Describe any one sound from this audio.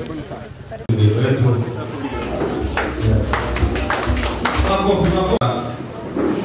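A crowd claps in a large room.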